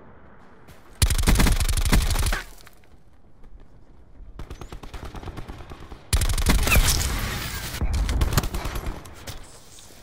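Rapid gunfire rattles loudly in short bursts.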